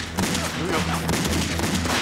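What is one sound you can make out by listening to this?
A gun fires sharply several times.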